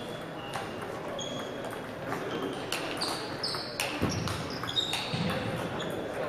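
A table tennis ball clicks back and forth off paddles and the table in a large hall.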